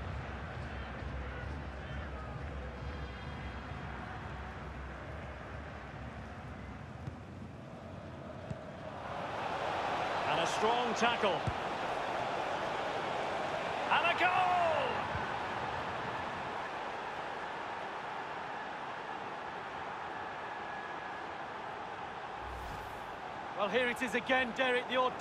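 A stadium crowd murmurs, then swells into a loud roar of cheering.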